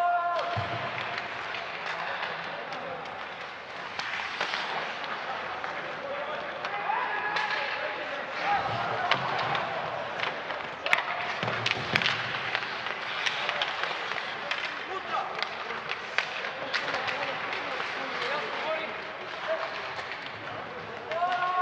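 Sticks clack against the puck and each other.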